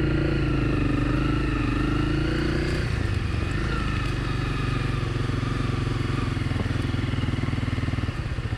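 A motorcycle engine rumbles steadily up close as the bike rides along.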